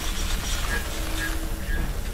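An electric repair beam buzzes and crackles.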